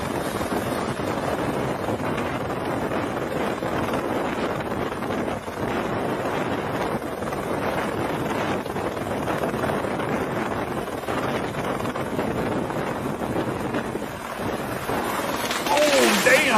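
A helicopter's rotor roars and thumps steadily nearby.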